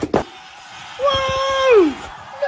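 A young man shouts loudly close by.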